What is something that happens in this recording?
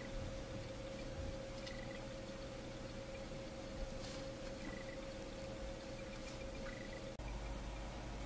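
Thread rustles softly as fingers wind it tightly.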